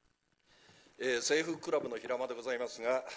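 A middle-aged man speaks firmly into a microphone in a large echoing hall.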